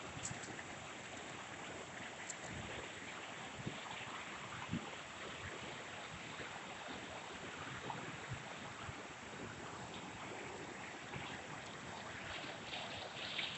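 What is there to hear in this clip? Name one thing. Water pours steadily over a weir and splashes into a pool below.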